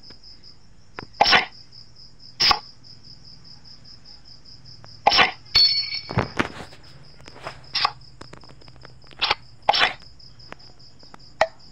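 Playing cards snap down one after another in a game.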